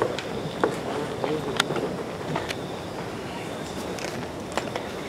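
Footsteps click across a stage floor.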